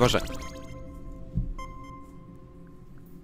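A short electronic video game jingle plays.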